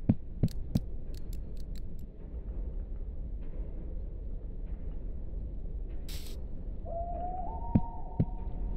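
Steam hisses steadily from several vents.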